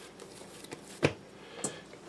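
A lump of dough thumps down onto a counter.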